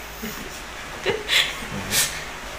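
A woman laughs softly close by.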